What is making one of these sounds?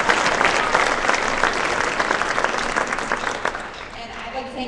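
An audience claps and cheers in a large echoing hall.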